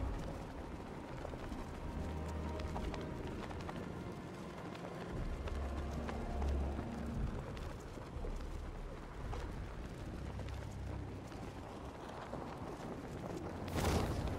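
Wind rushes past steadily and loudly.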